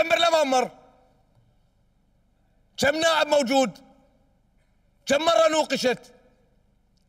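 A middle-aged man speaks into a microphone in short, deliberate phrases, with pauses between them.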